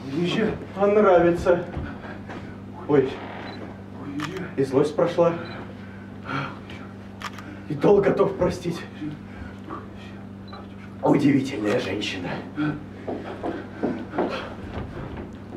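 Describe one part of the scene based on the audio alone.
A young man speaks with strong emotion, heard from a little distance in an echoing room.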